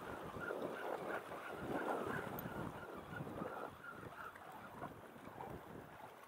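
Wind gusts outdoors, rumbling past.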